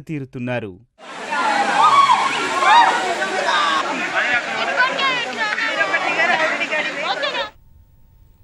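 A crowd of children and adults shout and squeal with excitement outdoors.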